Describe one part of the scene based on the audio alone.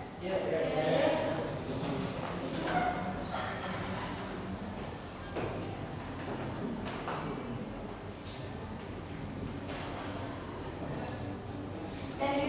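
A young woman speaks in an echoing room.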